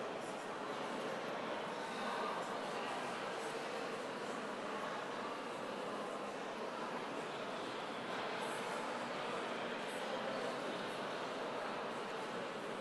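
A congregation sings together in a large echoing hall.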